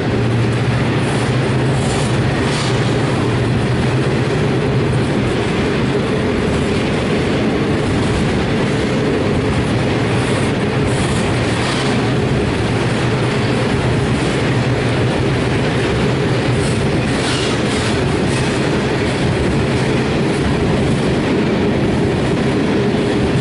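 A long freight train rumbles past at speed, close by.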